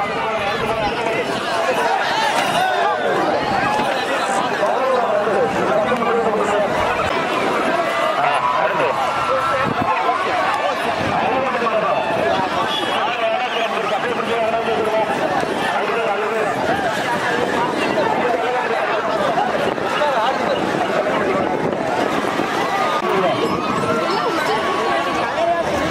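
A large outdoor crowd shouts and cheers loudly throughout.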